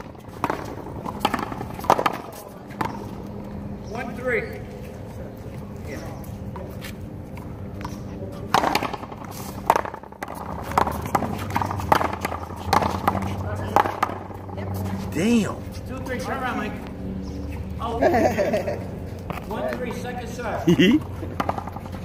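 A small rubber ball smacks against a wall and bounces off a hard court.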